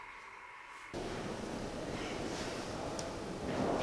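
An elderly man speaks.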